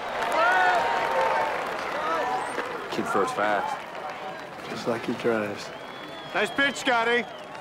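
A crowd cheers and chatters in the background.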